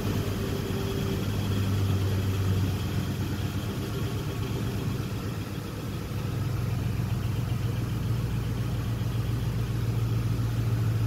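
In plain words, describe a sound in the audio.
A vehicle engine idles with a steady low rumble, heard from inside the cab.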